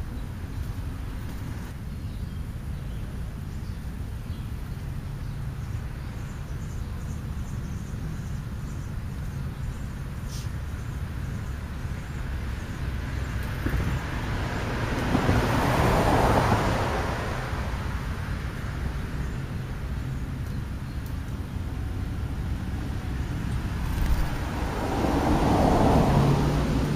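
Wind rumbles low and steadily outdoors.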